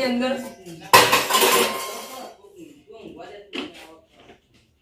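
Metal pots clatter as they are moved.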